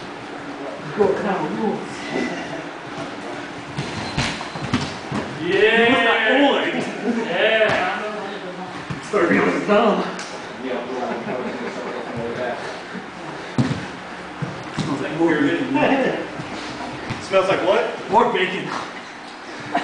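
Men talk nearby in a room that echoes a little.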